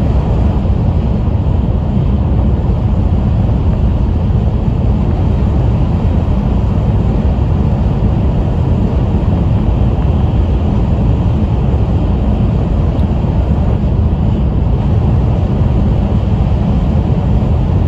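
A fast train rumbles steadily, heard from inside the carriage.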